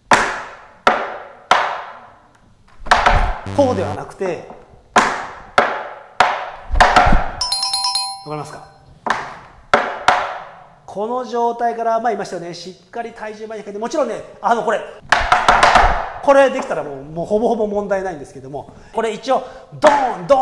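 Tap shoes click sharply on a wooden board.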